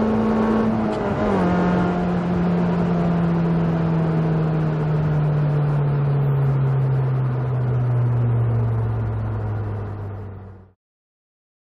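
A small four-cylinder petrol hatchback engine note drops and slowly falls as the car slows down, heard from inside the car.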